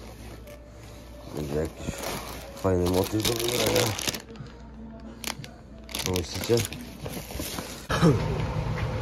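Plastic and fabric rustle as hands rummage through a bag.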